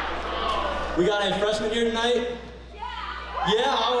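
A young man speaks into a microphone with animation over loudspeakers in a large hall.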